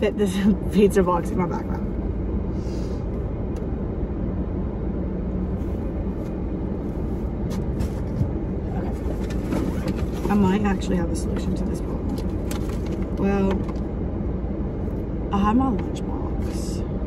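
A young woman talks up close, now and then.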